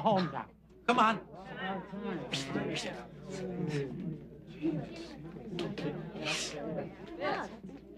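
A group of men and women talk over one another.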